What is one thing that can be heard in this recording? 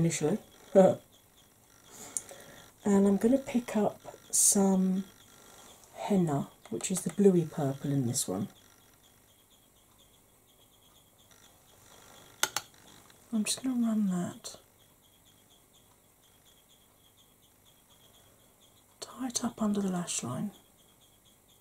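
A woman talks calmly, close to the microphone, in short phrases with pauses.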